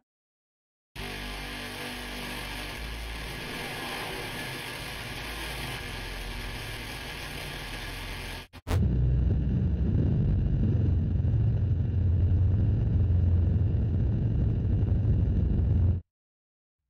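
A distorted electronic tone drones steadily, then grows louder and deeper.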